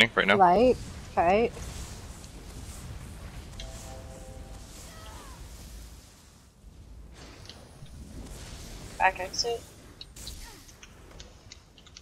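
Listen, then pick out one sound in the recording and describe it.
Magic lightning crackles and zaps in bursts.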